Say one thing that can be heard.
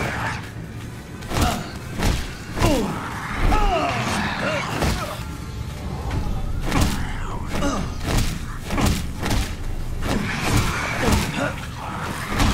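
A monster growls and snarls.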